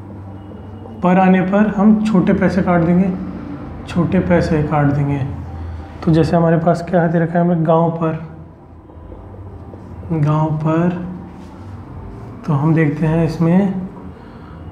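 A man speaks calmly, as if explaining.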